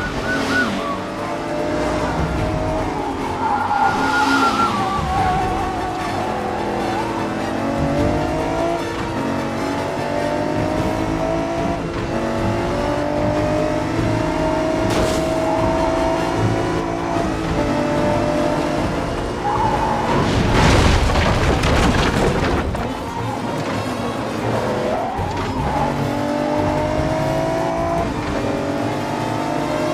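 A sports car engine roars steadily, rising and falling in pitch as it speeds along.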